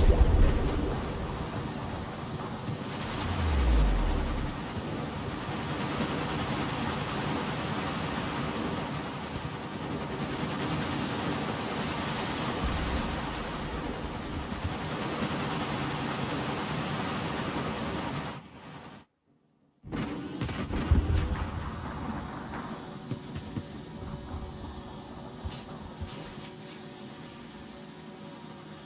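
Water rushes and churns steadily around a moving ship.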